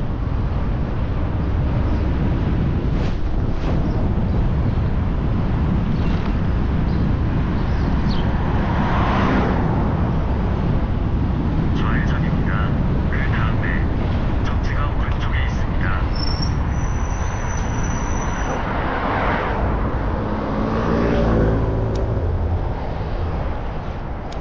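Wind buffets loudly against a microphone outdoors.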